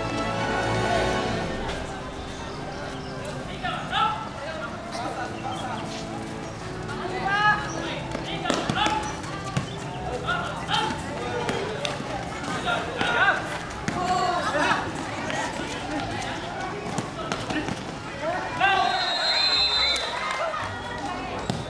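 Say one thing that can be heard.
A crowd of young spectators shouts and cheers outdoors.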